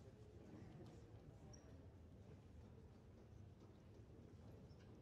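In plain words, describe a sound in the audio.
An orchestra of strings plays softly in a large hall.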